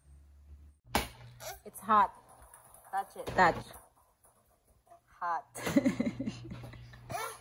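A toddler babbles and laughs close by.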